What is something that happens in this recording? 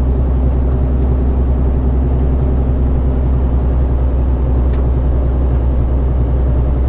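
A truck engine hums low and steady inside the cab.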